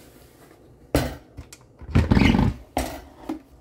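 A metal lid scrapes and clicks as it is turned shut on a pot.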